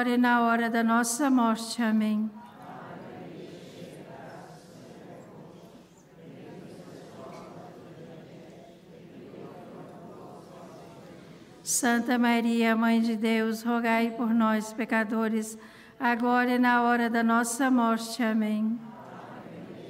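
An elderly man chants in a sustained singing voice through a microphone, echoing in a large open space.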